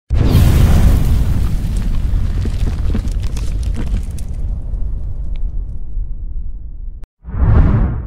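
A fiery explosion booms and rumbles slowly away.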